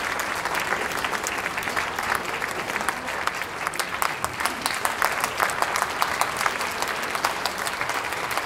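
A brass band plays a lively tune in an open, echoing space.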